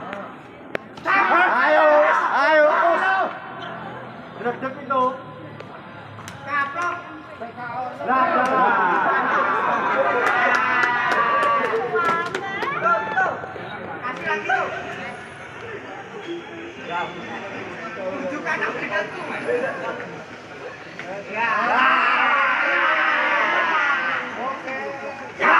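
A crowd of young people cheers and shouts loudly nearby.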